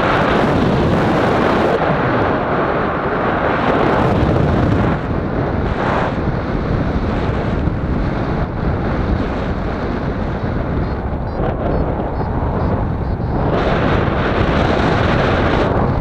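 Strong wind rushes and buffets loudly.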